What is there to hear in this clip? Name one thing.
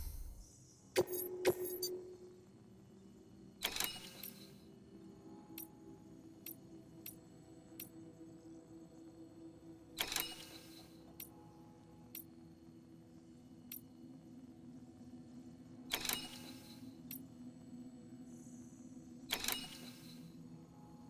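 Interface sounds whoosh and click as menus change.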